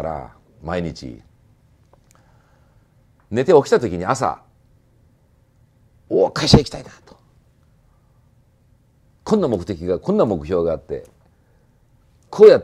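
An elderly man speaks calmly and with animation, close by.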